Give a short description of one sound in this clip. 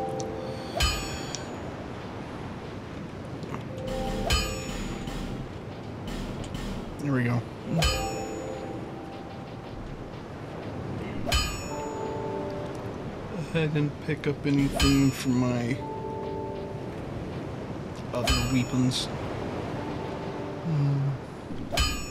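A game menu chimes with short, bright clicks.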